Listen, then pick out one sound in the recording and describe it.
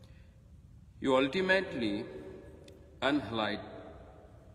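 A middle-aged man chants or recites calmly, close by.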